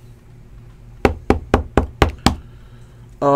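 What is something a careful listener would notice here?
A hard plastic card case taps and clicks in quick succession.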